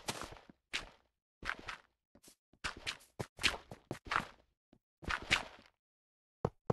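Dirt crunches in short bursts as it is dug away.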